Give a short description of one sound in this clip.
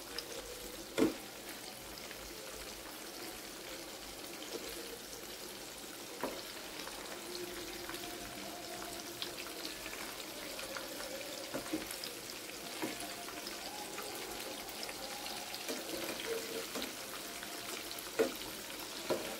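A metal spatula knocks against the pan now and then.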